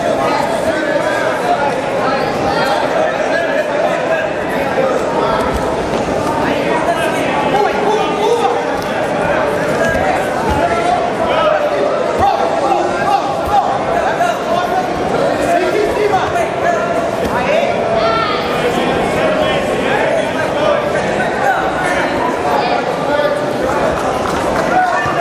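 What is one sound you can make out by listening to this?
A large crowd chatters and calls out steadily in an echoing hall.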